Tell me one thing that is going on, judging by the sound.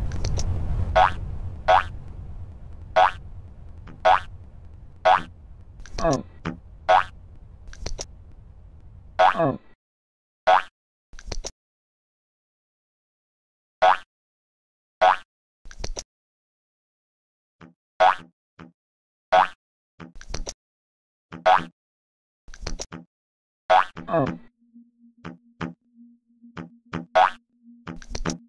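Short chirping blips sound again and again as a video game character jumps.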